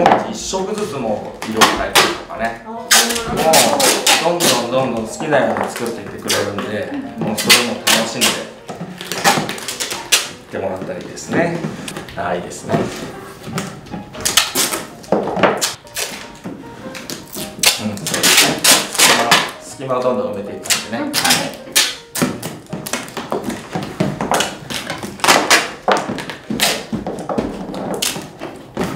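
Tape rips and crackles as it is pulled off a roll.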